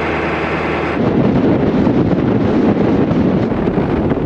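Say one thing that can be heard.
Wind and road noise roar steadily from a moving vehicle.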